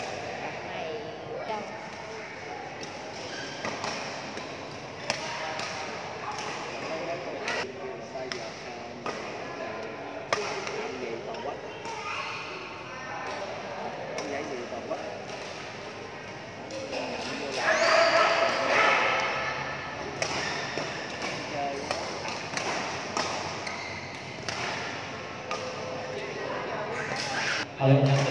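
Shoes squeak and thud on a court floor.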